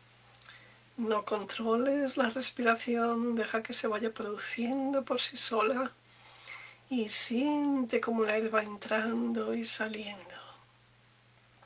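A middle-aged woman speaks slowly and softly close to a microphone.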